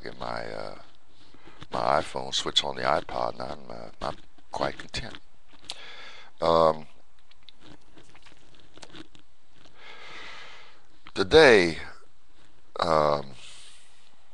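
A middle-aged man talks close to a microphone, in short bursts with pauses.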